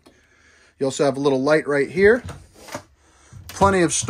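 A cabinet door swings open.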